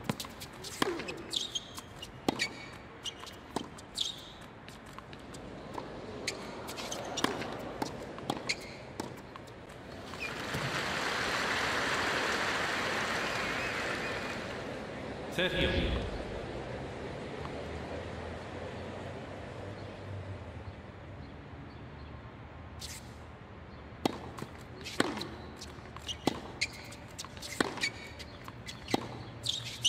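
Tennis balls are struck by rackets with sharp pops.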